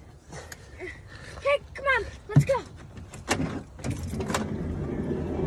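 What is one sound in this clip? A young girl speaks in a high, lively voice close by.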